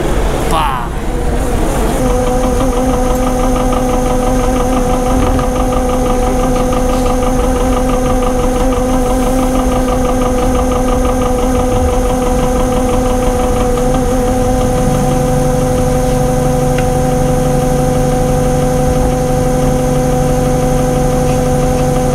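A pump engine hums steadily and loudly.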